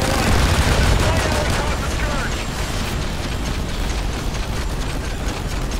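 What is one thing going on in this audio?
A loud explosion roars and rumbles.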